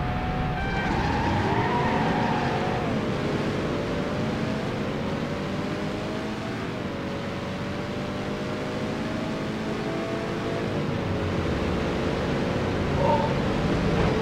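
A car engine revs hard and climbs through the gears.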